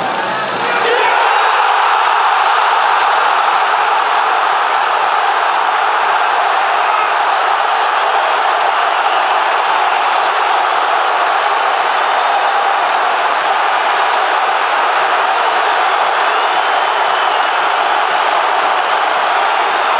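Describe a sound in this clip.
A huge crowd roars in a large echoing stadium.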